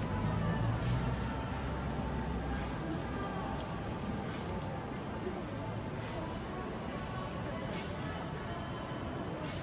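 A crowd of passers-by murmurs outdoors.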